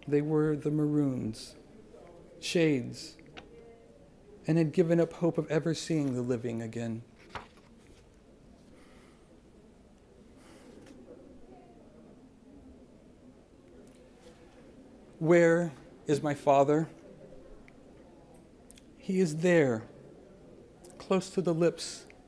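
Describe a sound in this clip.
A man reads aloud calmly into a microphone, with long pauses.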